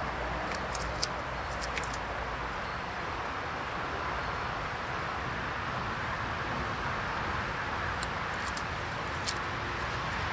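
A wooden frame knocks and clicks against a hive box.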